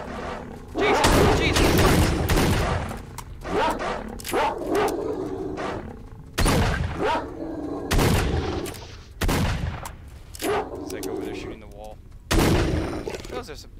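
A shotgun fires loud blasts several times.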